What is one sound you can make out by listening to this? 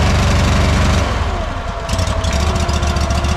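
A small engine's pitch dips and then rises again as it revs.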